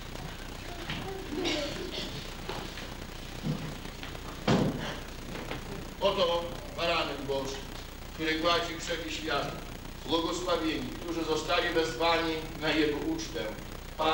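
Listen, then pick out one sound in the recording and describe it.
An elderly man speaks slowly and solemnly, with a light echo.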